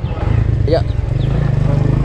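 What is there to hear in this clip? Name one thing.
Another motorcycle passes close by.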